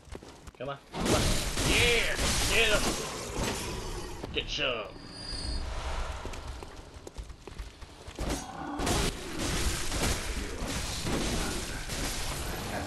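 A blade slashes repeatedly in a fight.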